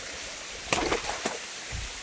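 Water trickles gently over rocks.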